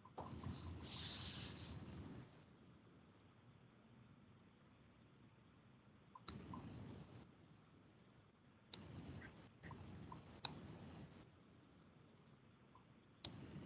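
A woman speaks calmly through an online call, in short bursts.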